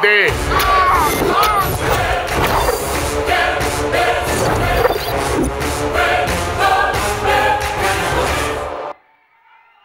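Loud music with a heavy beat plays through loudspeakers.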